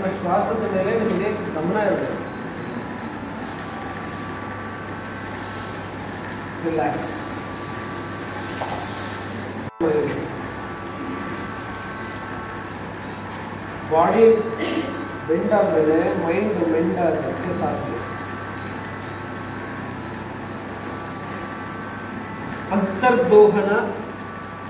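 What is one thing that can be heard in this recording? A man speaks calmly in bursts through a microphone in an echoing room.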